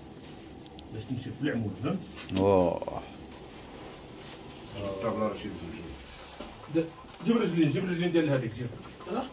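Men talk nearby in casual voices.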